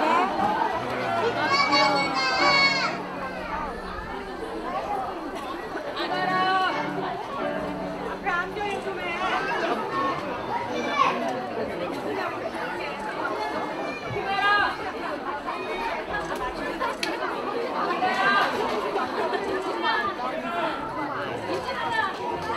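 Young children's voices call out high and excited.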